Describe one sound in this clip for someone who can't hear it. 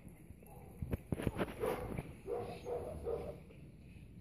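A dog barks nearby a few times.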